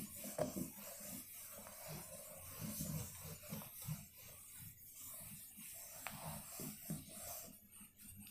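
A marker squeaks faintly on a whiteboard.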